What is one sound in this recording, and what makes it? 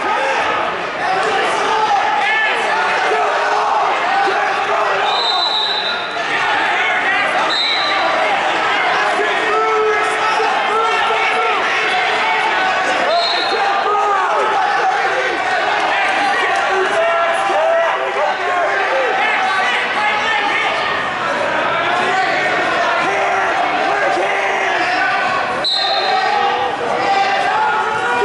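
A crowd chatters and shouts throughout a large echoing gym.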